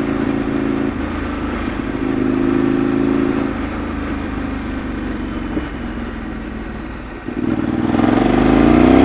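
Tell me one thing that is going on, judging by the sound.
A V-twin sport bike engine hums while cruising.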